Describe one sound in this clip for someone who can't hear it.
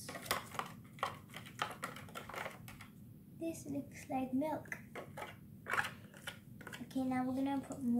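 A plastic spoon scrapes and taps inside a plastic tub.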